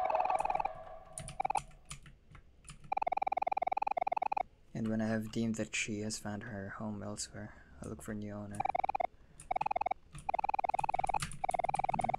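Short electronic blips chirp rapidly as game dialogue text types out.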